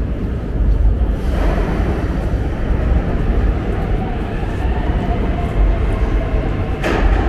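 Footsteps of many people shuffle across a hard floor in a large echoing hall.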